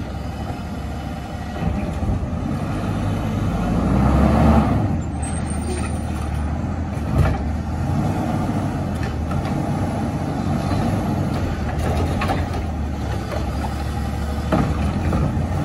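A garbage truck engine rumbles and idles nearby.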